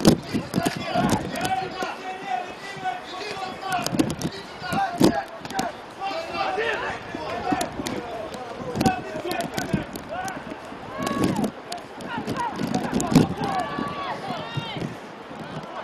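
Men shout to each other outdoors across a large open field.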